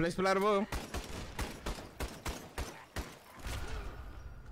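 A gun fires several quick shots.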